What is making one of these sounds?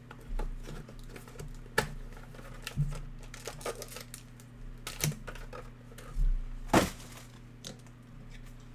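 Foil card packs crinkle and tear open by hand.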